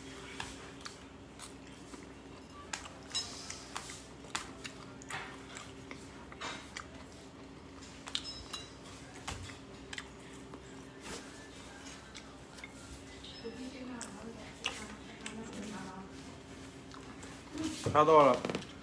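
A young man eats and chews close to the microphone.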